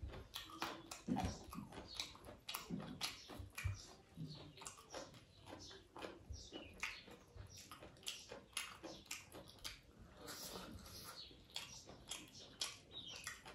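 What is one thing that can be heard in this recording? A man chews food with wet, smacking mouth sounds close to the microphone.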